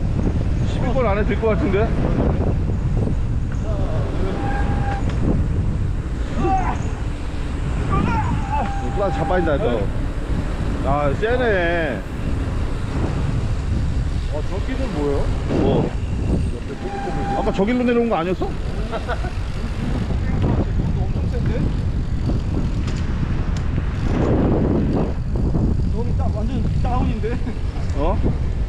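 A man talks in short bursts nearby.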